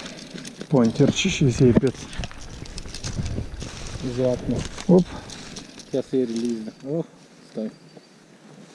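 A man talks nearby in a relaxed, animated way.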